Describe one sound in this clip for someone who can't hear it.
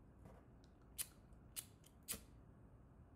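A lighter clicks several times.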